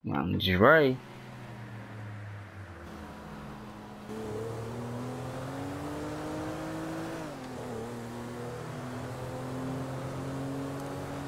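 Tyres roll on a road with a steady rush.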